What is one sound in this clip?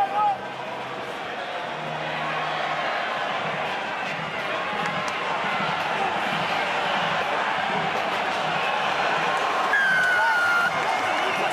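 A large stadium crowd roars and cheers, growing louder.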